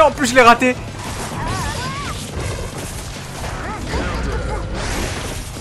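Fighting game music plays.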